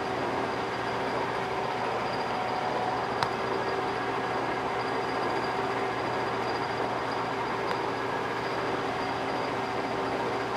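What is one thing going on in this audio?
A metal lathe hums steadily as its chuck spins.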